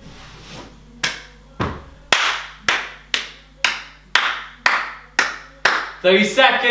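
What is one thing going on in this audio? A man claps his hands in a steady rhythm.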